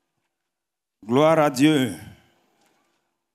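A young man speaks loudly into a microphone.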